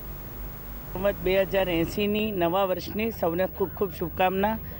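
A middle-aged woman speaks calmly into microphones, close by.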